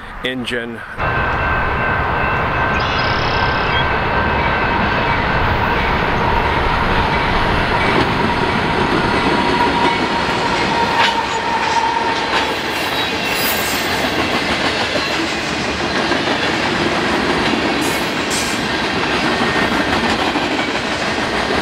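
Train wheels squeal and clatter on the rails.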